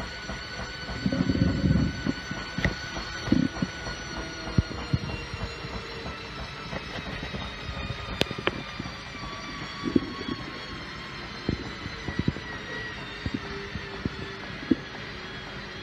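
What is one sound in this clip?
Laundry and water slosh and thump inside a washing machine drum.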